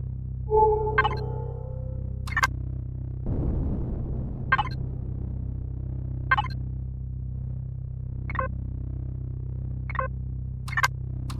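Short menu clicks sound every second or two.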